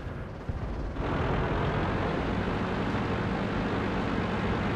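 A tank engine rumbles and clatters loudly.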